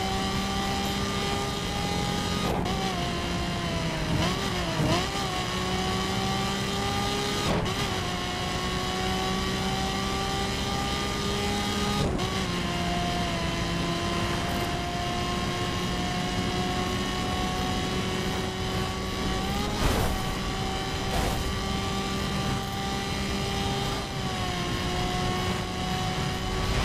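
A sports car engine roars at high speed, shifting gears with brief drops in pitch.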